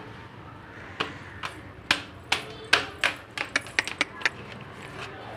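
Hooves clop on a hard floor.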